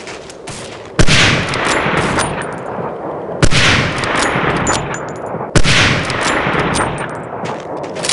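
A bolt-action sniper rifle fires, each shot with a long echoing report.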